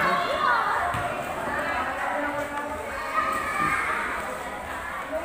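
A crowd of men and women chatter nearby under a large echoing roof.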